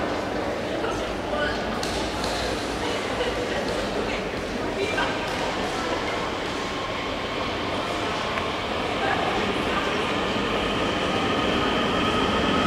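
A train rumbles steadily in an echoing station.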